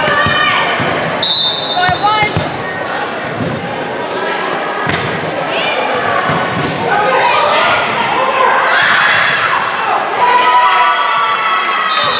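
A volleyball thuds off hands and arms.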